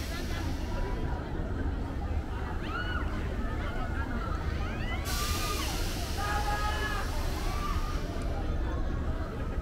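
A crowd of people chatters nearby, outdoors.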